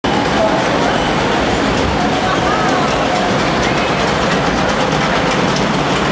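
Water rushes and splashes loudly along a flume channel.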